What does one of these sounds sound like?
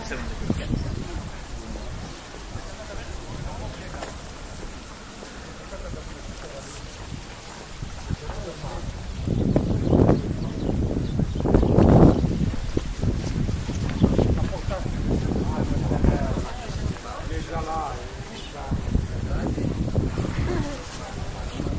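People chatter in the distance outdoors.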